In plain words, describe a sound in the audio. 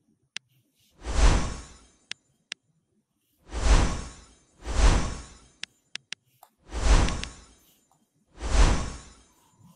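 Whooshing bursts of game sound effects swell and fade, one after another.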